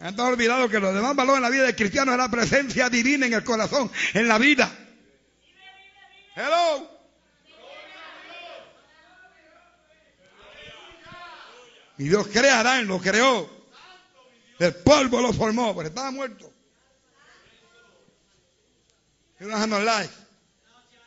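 An elderly man preaches passionately, in bursts with pauses between.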